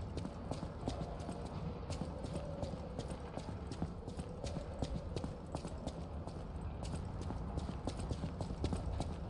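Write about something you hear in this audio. Footsteps run quickly over gravel and wooden planks.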